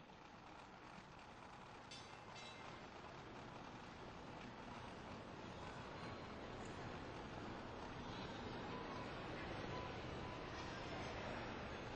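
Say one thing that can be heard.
Roller skates roll steadily across a floor.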